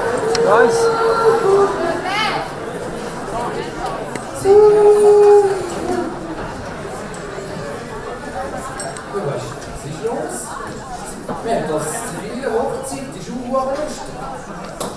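A man speaks loudly and with animation in a large echoing hall.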